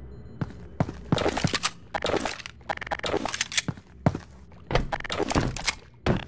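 A pistol is reloaded with sharp metallic clicks.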